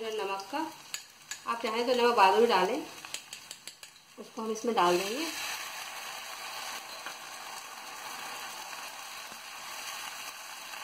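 Vegetables sizzle steadily in hot oil in a pan.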